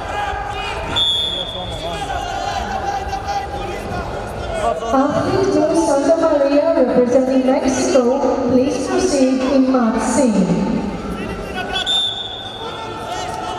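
A referee blows a short, sharp whistle.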